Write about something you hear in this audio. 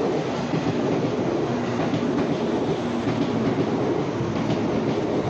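A train rushes past at speed, rumbling and roaring loudly.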